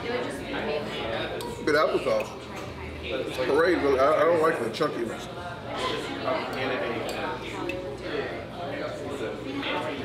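A knife scrapes against a plate.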